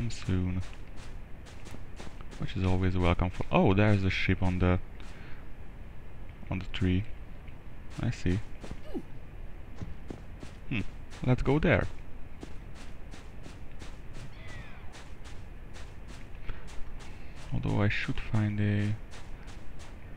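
Quick footsteps run over dry ground.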